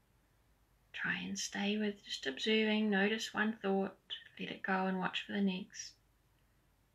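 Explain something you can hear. A woman speaks calmly and softly close by.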